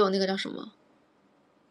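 A young woman speaks briefly and close up.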